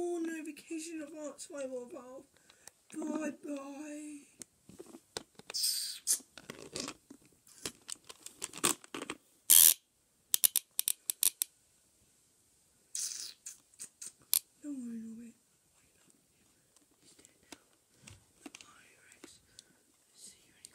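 A plastic toy knocks and clacks.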